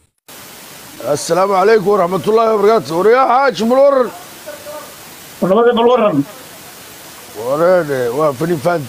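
A man speaks with animation, close up.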